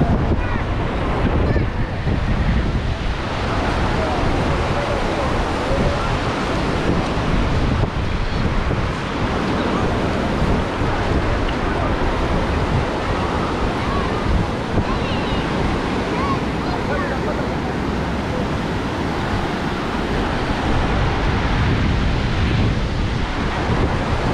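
A crowd of people chatters in the distance outdoors.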